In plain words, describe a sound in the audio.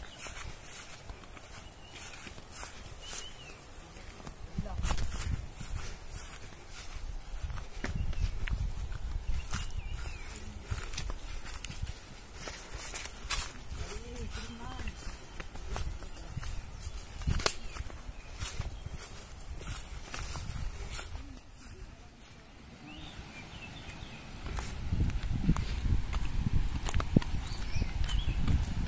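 Footsteps swish through wet grass and undergrowth.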